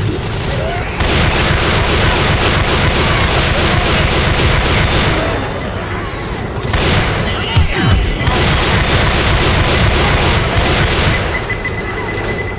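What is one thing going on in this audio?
Rifle shots crack rapidly in bursts.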